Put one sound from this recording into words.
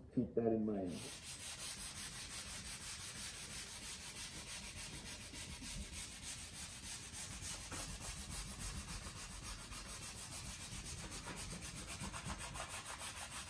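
Sandpaper rubs back and forth over wood in quick, steady strokes.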